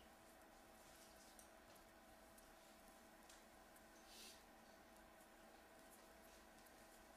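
A felt-tip marker taps quickly and lightly on paper, dotting over and over.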